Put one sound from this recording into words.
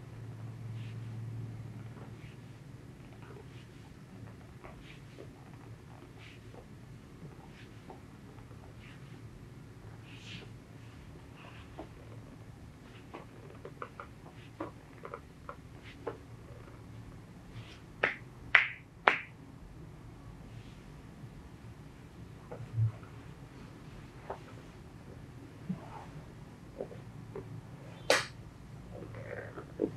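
Hands rub and press on fabric with soft rustling.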